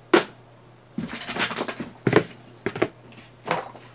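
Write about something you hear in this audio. A cardboard box is set down on a table.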